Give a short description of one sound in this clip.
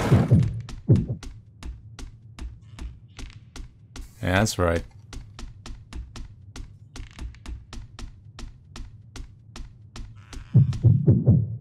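Quick footsteps tap on a wooden floor.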